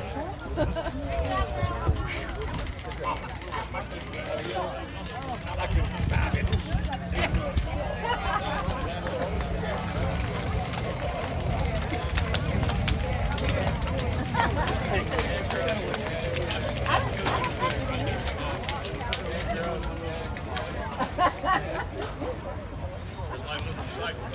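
Young women chatter and call out to one another at a distance outdoors.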